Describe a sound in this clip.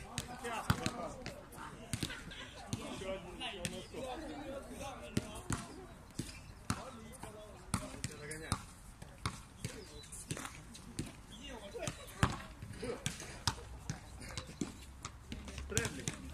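A basketball bounces on a hard outdoor court again and again.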